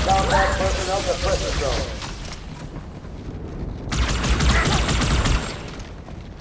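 Energy weapons fire in quick, crackling bursts.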